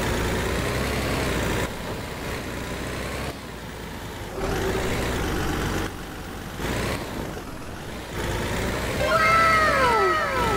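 A truck engine rumbles and revs as it drives.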